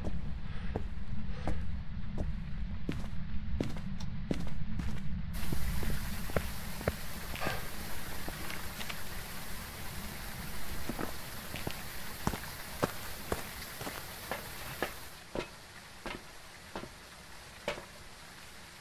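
Footsteps thud at a steady walking pace.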